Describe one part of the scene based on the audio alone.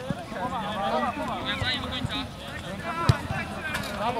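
A football is kicked hard on an outdoor pitch.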